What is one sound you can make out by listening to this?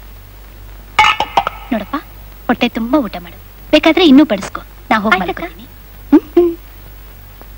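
A woman speaks gently and closely.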